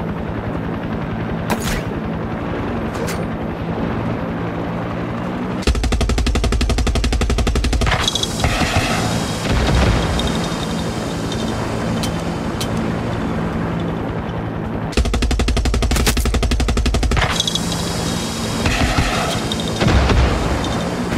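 A helicopter's rotor thumps and whirs steadily.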